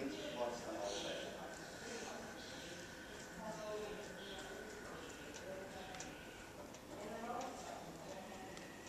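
A man speaks calmly from across a large echoing hall.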